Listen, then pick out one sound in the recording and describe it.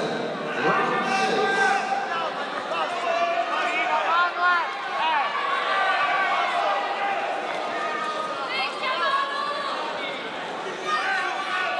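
A large crowd shouts and cheers loudly in an echoing hall.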